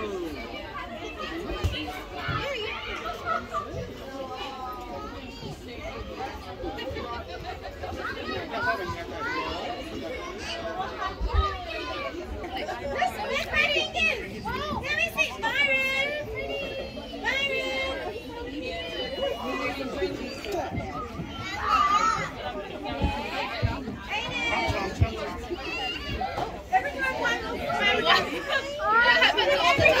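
Adults talk in the background.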